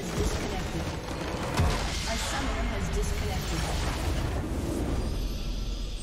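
Magic blasts and explosions crash loudly in a game battle.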